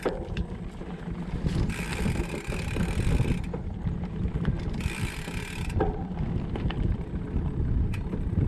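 Bicycle tyres crunch over rough, stony ground.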